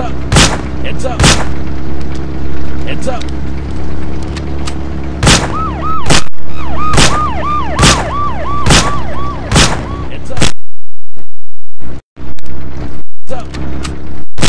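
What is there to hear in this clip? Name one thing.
A tank cannon fires in loud, sharp blasts.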